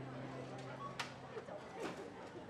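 Coins clink onto a table.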